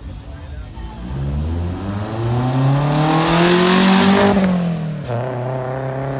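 A car engine roars as the car speeds past close by, its pitch dropping as it goes.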